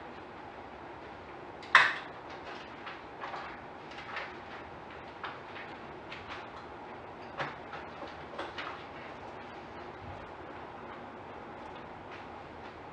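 A man speaks calmly at a distance in an echoing room.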